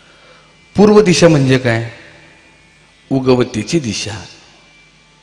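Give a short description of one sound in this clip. A man speaks forcefully into a microphone over a loudspeaker, in short bursts.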